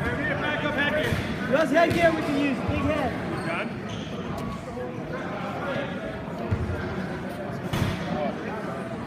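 A crowd of people talks and cheers in a large echoing gym.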